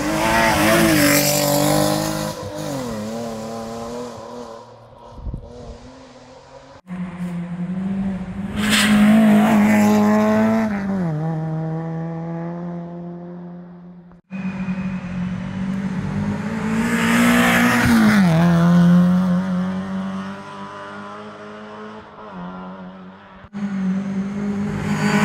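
A rally car engine roars and revs hard as it speeds past.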